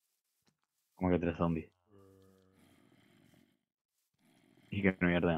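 A zombie groans low and raspy.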